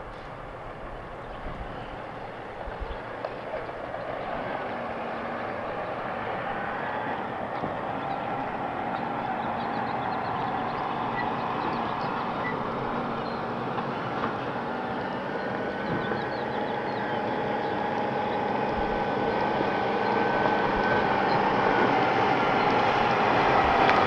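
A large truck's engine rumbles as it approaches and grows steadily louder.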